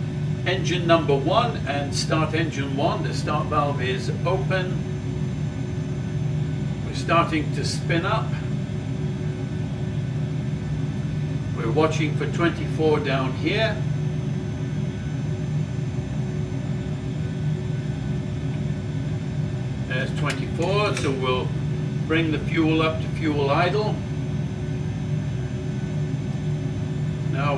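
Aircraft engines drone with a steady low hum.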